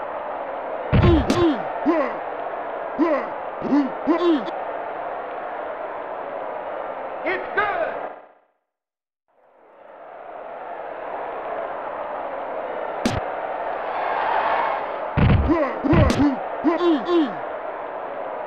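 Video game football players collide with heavy thuds.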